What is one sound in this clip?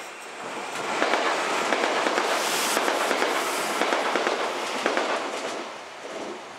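A train rushes past close by with a loud rumble and rattle of wheels on the rails.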